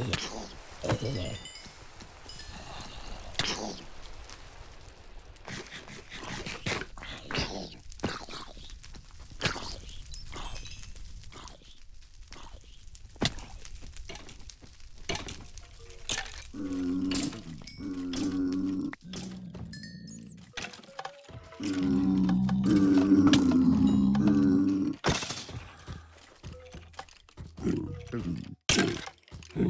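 A sword strikes with sharp thuds.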